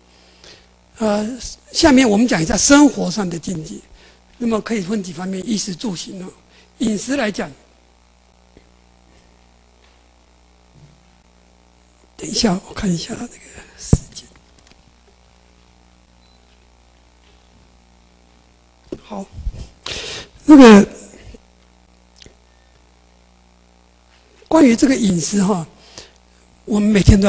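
An elderly man lectures calmly through a microphone, speaking in bursts with long pauses.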